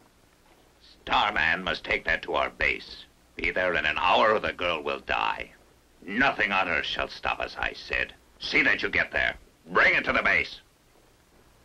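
An older man speaks firmly and loudly.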